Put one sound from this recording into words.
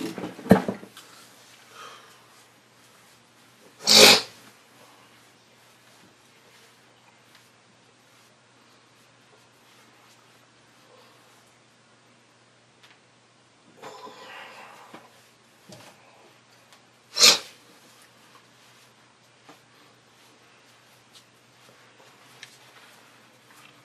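Footsteps move away across the floor and later return.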